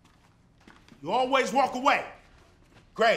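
A man exclaims loudly.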